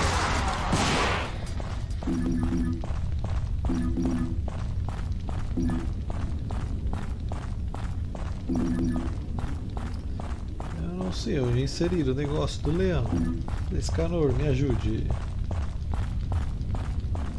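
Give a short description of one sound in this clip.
Quick footsteps tap on stone in a game.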